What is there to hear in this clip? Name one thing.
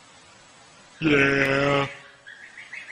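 A goat lets out a loud, long bleat close by.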